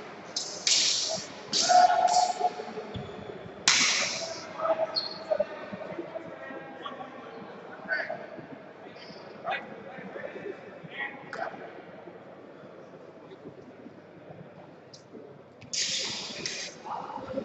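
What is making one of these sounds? Several adults talk and call out in a large echoing hall.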